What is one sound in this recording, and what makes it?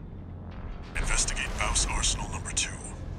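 Gunfire and explosions boom from a game.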